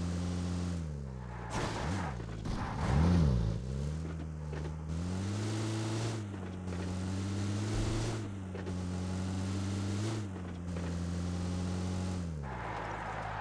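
An off-road vehicle's engine drones, rising and falling in pitch as it speeds up and slows.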